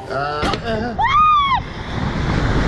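A young girl screams as the ride launches.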